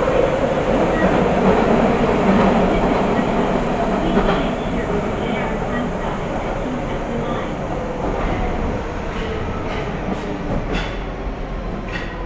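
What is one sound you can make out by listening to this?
A stopped train hums steadily at a platform.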